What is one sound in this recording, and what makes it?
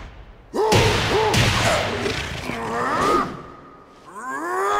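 A man growls fiercely.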